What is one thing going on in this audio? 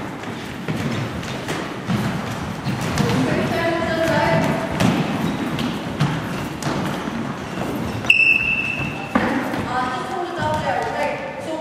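Players' shoes thud and squeak on a wooden floor in an echoing hall.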